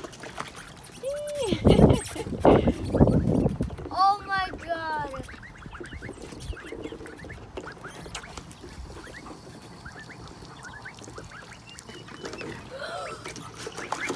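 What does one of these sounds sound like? Ducks quack now and then.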